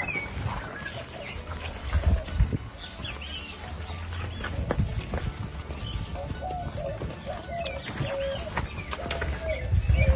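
A cow's hooves thud softly on soft, muddy earth.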